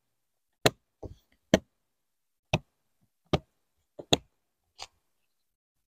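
Plastic latches on a hard case snap open with sharp clicks.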